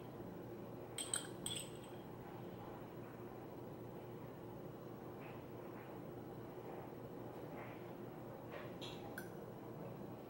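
A metal fork clinks against a small glass jar.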